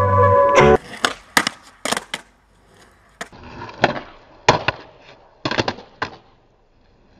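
A skateboard clatters and slaps against concrete.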